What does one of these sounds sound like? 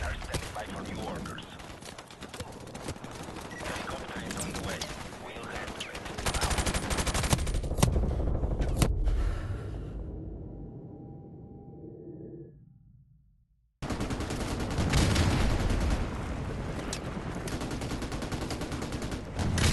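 Rifle shots fire in rapid bursts, close by.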